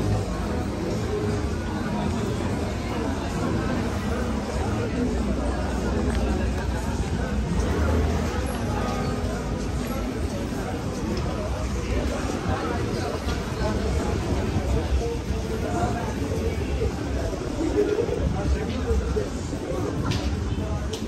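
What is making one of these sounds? Footsteps scuff on cobblestones.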